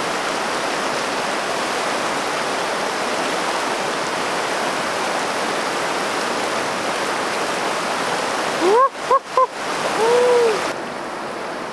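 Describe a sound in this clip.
A shallow river rushes and splashes over rocks.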